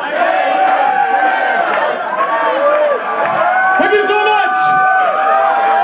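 A man sings through loudspeakers at a loud concert.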